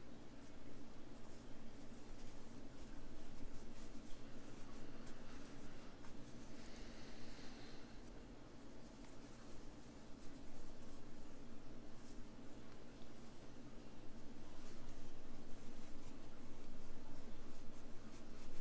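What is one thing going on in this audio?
Fibre stuffing rustles softly as fingers push it into a knitted toy.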